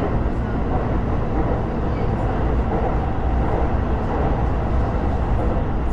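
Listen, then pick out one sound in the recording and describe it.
A passing train rushes by close in the other direction.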